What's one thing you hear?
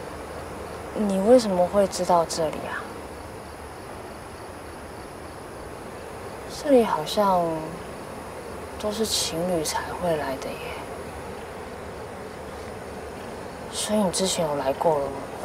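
A young man speaks quietly and calmly nearby.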